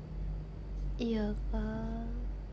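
A young woman speaks softly close by.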